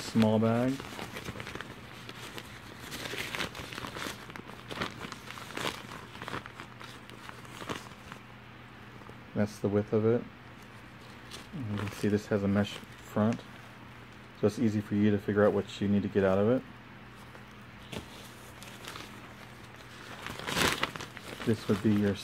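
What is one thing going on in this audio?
Mesh fabric rustles and crinkles in hands.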